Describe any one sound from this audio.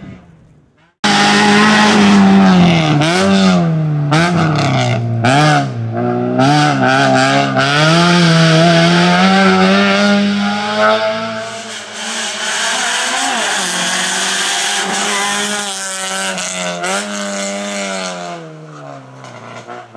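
A race-prepared hatchback revs hard, its engine note rising and falling with gear changes.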